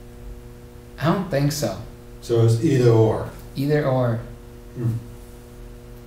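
A young man speaks calmly and close by, in short phrases.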